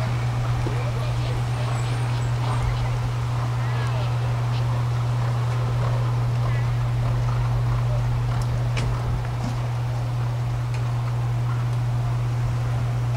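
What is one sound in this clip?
A horse's hooves thud on grass as it canters.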